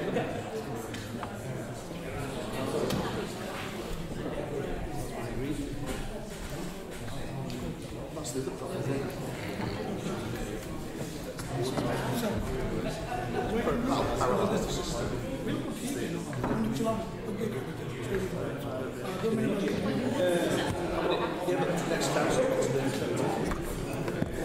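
Several men talk over one another.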